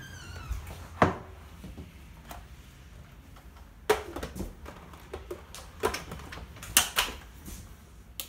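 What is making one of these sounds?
A plastic blender jar knocks and clicks as it is handled.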